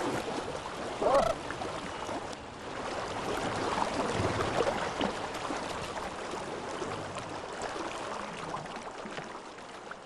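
Water splashes as an animal wades through a stream.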